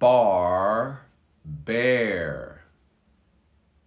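A man speaks clearly and slowly into a close microphone, pronouncing two words.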